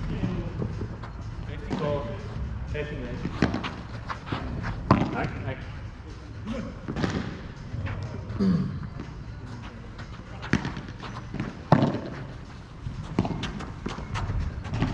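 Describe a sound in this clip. Padel rackets hit a ball with sharp pops that echo off the walls.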